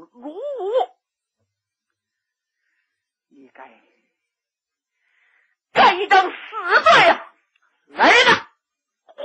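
A middle-aged woman tells a story with lively, sing-song expression, close to a microphone.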